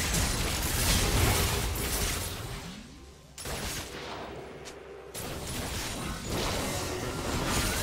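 Game spell effects whoosh and crackle in a fast battle.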